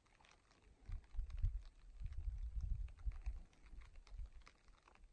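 Wind gusts outdoors and rumbles against the microphone.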